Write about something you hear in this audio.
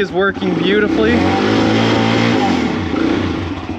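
A motorcycle engine revs up and settles back down.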